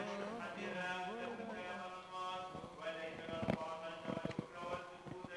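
A man chants a liturgy in a slow, sung voice, echoing through a large hall.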